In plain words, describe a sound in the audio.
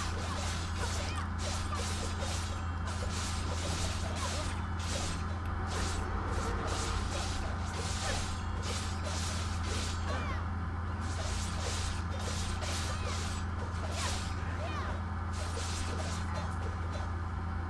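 Blades slash and strike in a quick, fierce fight.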